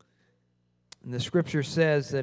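A man speaks through a microphone in a large room.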